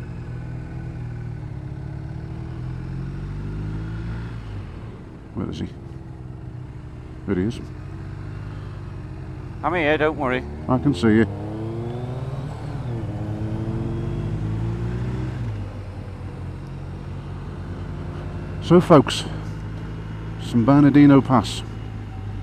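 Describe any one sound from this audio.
A motorcycle engine hums steadily, its pitch rising and falling with the throttle.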